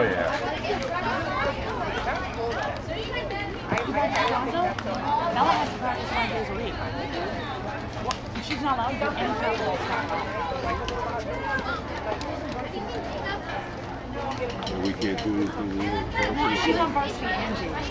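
Young girls chatter and call out to each other across an open outdoor field.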